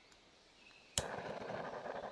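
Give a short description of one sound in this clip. Liquid trickles into a narrow metal pipe.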